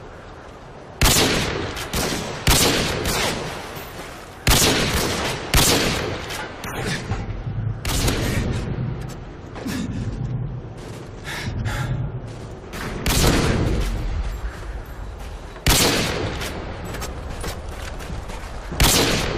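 Sniper rifle shots boom loudly, each followed by a rolling echo.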